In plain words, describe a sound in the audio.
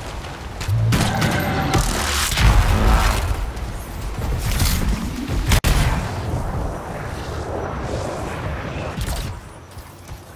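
Jet thrusters roar and whoosh.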